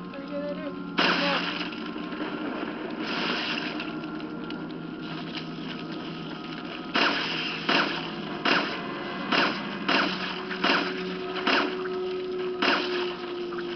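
Gunshots ring out in quick bursts, one after another.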